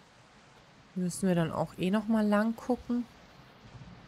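A young woman speaks briefly and with animation into a close microphone.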